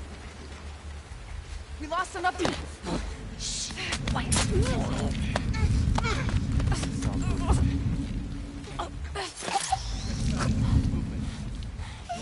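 Two people scuffle and grapple with dull thumps.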